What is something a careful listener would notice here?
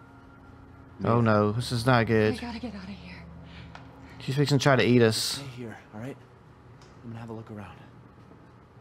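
A man speaks softly and calmly.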